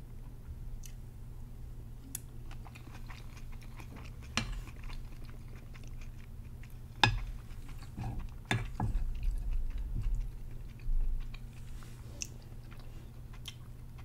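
A young woman chews food with wet smacking sounds close to a microphone.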